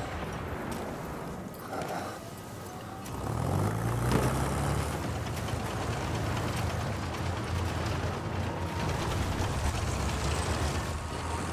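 Wind blows steadily over open ground.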